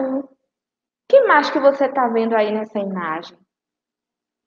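A woman speaks clearly into a microphone.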